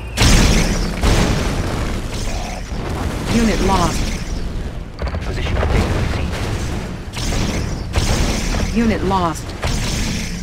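Explosions boom and rumble in rapid bursts.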